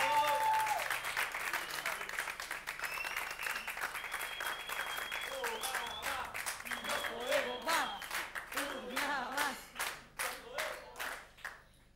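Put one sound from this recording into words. A band plays lively music with horns, guitars and percussion.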